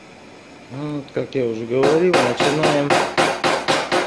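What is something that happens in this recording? A hammer taps lightly on a metal panel.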